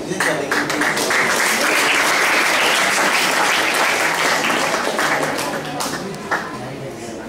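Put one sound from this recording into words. A small crowd claps steadily in an echoing hall.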